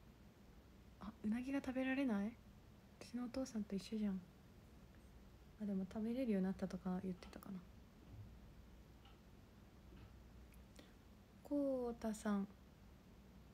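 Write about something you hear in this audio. A young woman speaks softly and calmly, close to the microphone, in short phrases.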